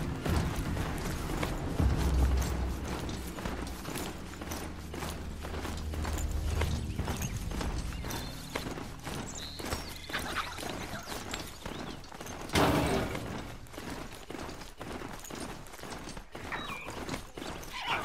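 Hooves of a mechanical mount thud rapidly on a dirt path.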